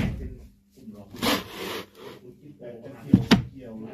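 Items rustle and knock as a hand rummages on a shelf.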